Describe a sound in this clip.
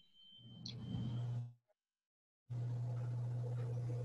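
A plate slides across a wooden table.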